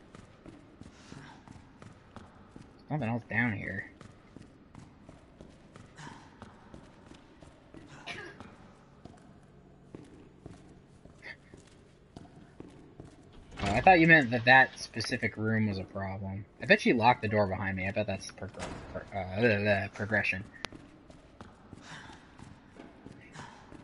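Footsteps echo on a hard concrete floor.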